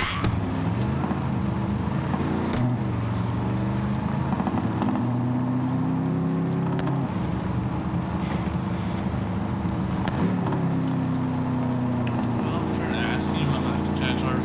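An engine hums and revs steadily as a vehicle drives along.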